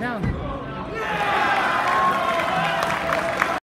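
A crowd applauds loudly.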